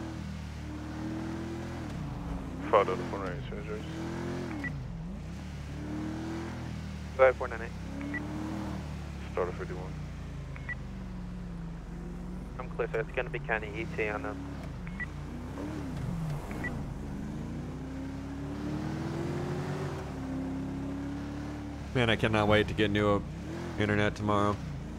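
A car engine hums steadily and rises and falls in pitch as the car drives along.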